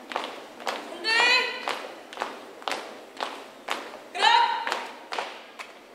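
A young man shouts marching commands loudly.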